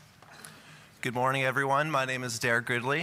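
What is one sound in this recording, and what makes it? A man speaks into a microphone in a large, echoing hall.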